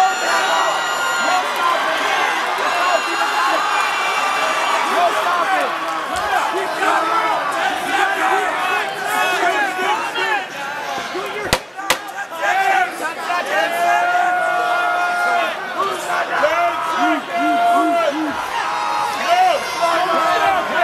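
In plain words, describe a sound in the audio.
Men shout loudly from close by.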